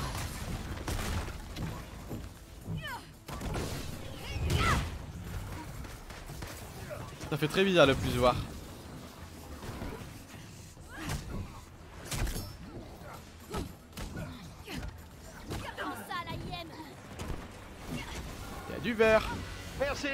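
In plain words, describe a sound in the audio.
Blasts and impacts crash in a fight.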